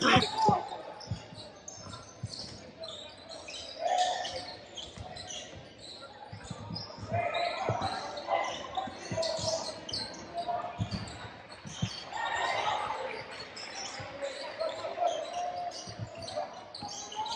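A basketball bounces with dull thuds on a wooden floor.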